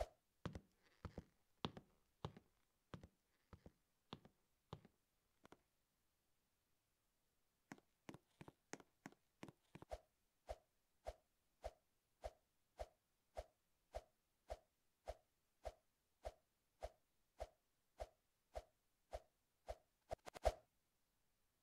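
A game figure's footsteps tap rapidly in an even rhythm.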